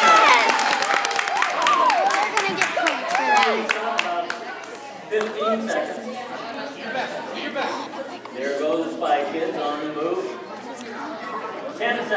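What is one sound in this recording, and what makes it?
A crowd of young people chatter and call out in an echoing hall.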